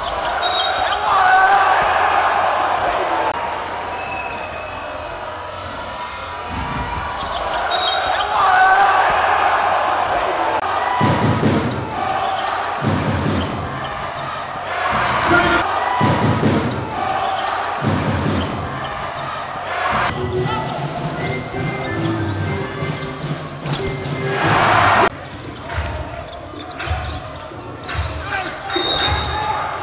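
A crowd cheers and roars in a large echoing hall.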